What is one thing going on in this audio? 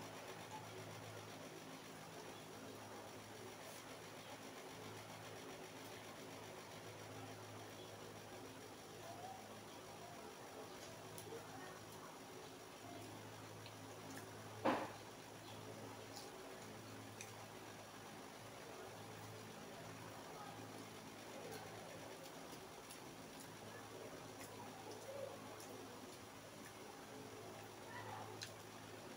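A person chews crunchy lettuce wraps close up, with wet smacking sounds.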